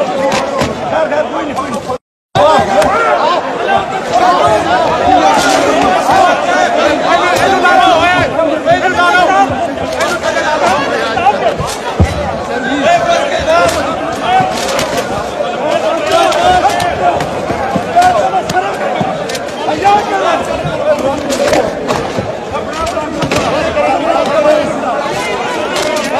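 A large crowd of men shouts and chants loudly in a big echoing hall.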